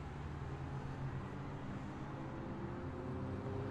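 A bus engine rumbles low and close as it passes.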